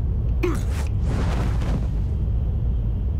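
A parachute opens with a sudden whoosh.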